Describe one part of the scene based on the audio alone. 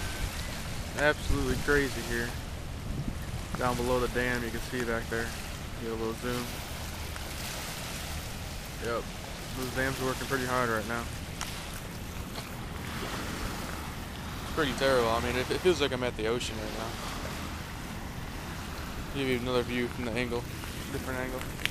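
A man talks casually close to the microphone.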